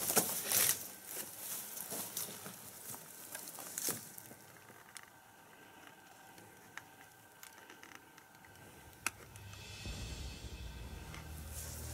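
Dry grass rustles and crackles as a hand pushes through it.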